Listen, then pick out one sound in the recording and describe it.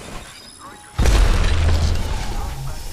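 A metal bin slides open with a loud whoosh.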